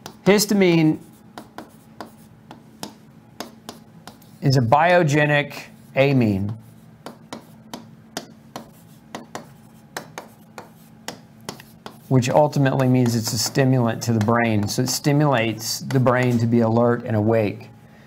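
A marker taps and squeaks on a whiteboard.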